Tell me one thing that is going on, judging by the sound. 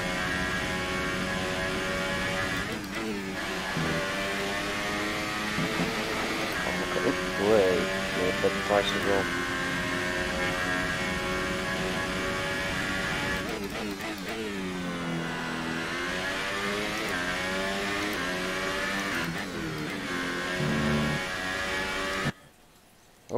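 A racing car engine screams at high revs, rising and falling as the gears shift.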